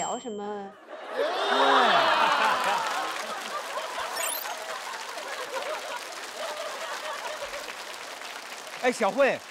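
An audience laughs and claps loudly.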